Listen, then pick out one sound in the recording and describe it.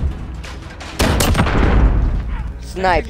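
Gunshots fire in a quick burst.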